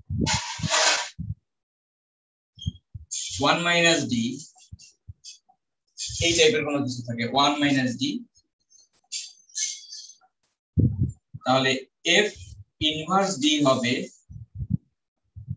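A man lectures calmly through a microphone, in bursts with pauses.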